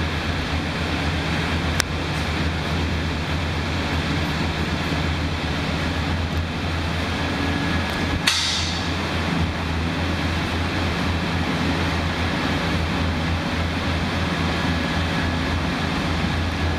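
Molten metal pours and sizzles into moulds.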